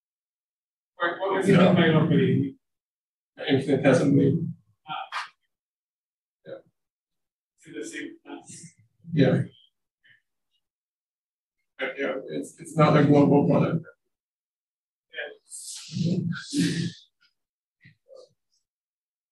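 A young man lectures calmly, close to a microphone, with pauses between phrases.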